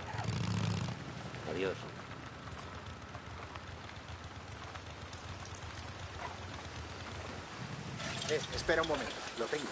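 A motorcycle engine rumbles low and steady.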